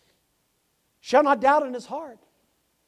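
An elderly man speaks into a microphone.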